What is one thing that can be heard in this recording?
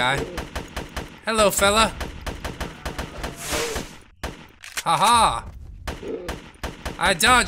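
A gun fires in rapid, repeated shots.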